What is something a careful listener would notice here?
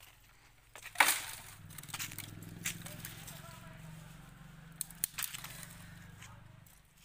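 Dry branches rustle and crackle.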